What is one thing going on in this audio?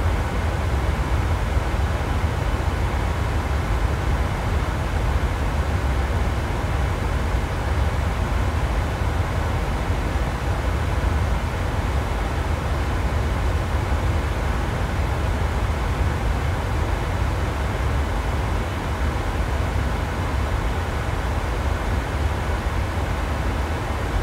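A jet engine roars steadily outside the cabin.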